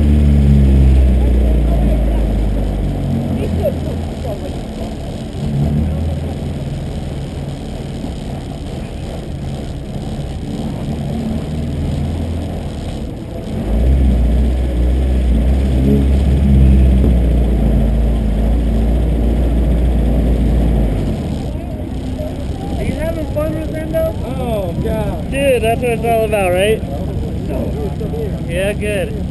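A car engine roars and revs up and down close by.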